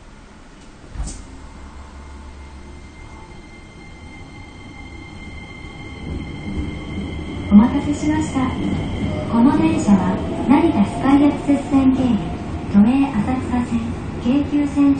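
A train rumbles steadily through a tunnel, growing louder.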